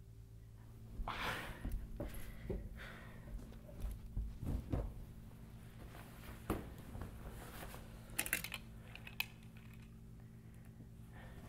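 Footsteps thump on wooden stairs close by.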